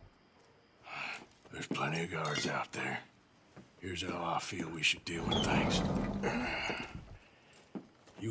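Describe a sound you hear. A man speaks calmly and low, close by.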